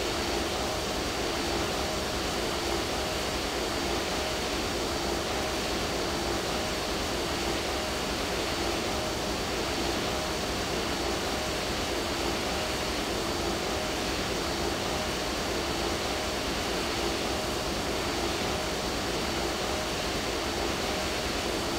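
A twin-engine jet airliner's engines drone steadily while cruising.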